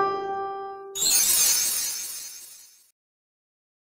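A game plays a sparkling shimmer.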